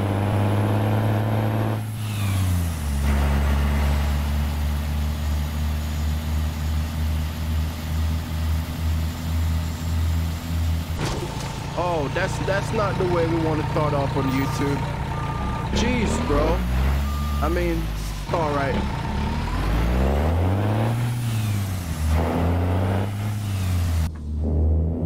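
A truck engine rumbles steadily, its pitch rising and falling now and then.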